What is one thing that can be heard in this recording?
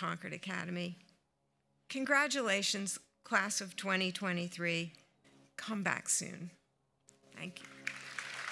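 A woman speaks calmly into a microphone over a loudspeaker.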